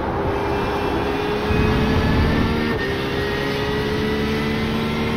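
A racing car engine roars steadily, its pitch climbing slowly.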